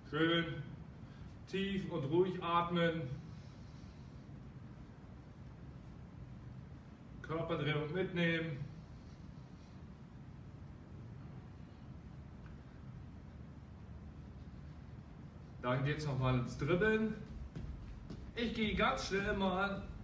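A man speaks calmly in short bursts, with pauses.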